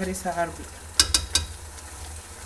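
A metal spoon clinks against a plate.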